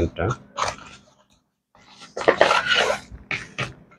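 A cardboard box lid slides open.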